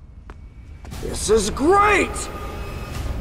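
A man exclaims in amazement.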